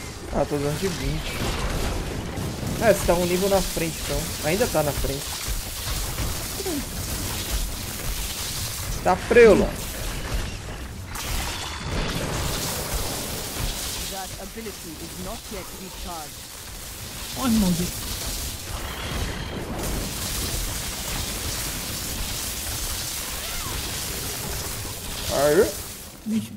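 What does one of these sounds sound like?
Magic blasts, fiery bursts and crackling hits clash in a frantic game battle.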